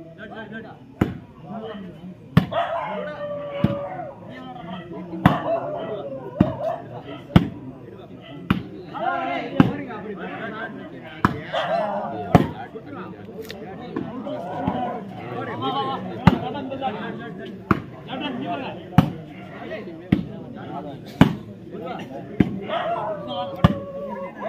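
A ball is struck hard by hands again and again, with sharp thumps.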